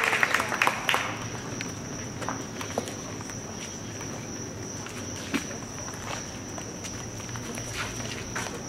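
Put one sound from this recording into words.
Footsteps shuffle and tap on hard ground.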